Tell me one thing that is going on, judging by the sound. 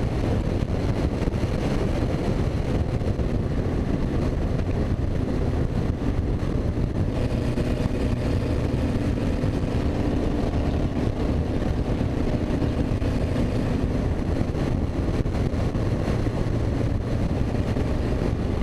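A race car engine roars loudly and steadily at speed.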